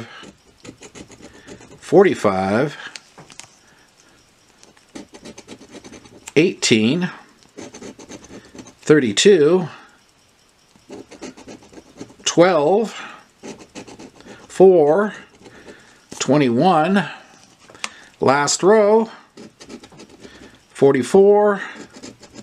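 A coin scratches across a card in short, rasping strokes.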